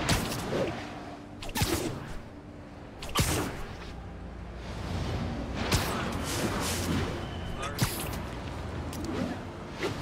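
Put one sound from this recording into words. Wind rushes past during a fast swinging fall.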